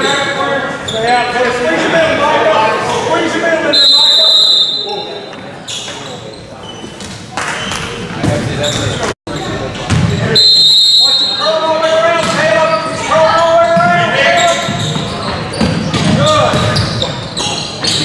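Spectators and players shout in an echoing gym.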